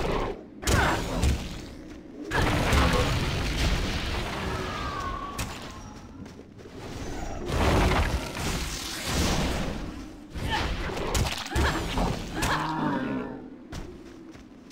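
Magic spells crackle and burst in loud flurries.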